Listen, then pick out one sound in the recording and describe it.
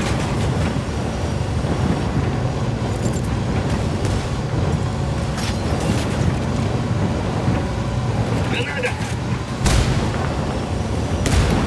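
A heavy armoured vehicle's engine rumbles loudly and steadily.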